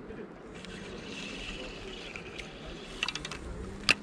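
A fishing reel whirs softly as its handle is turned.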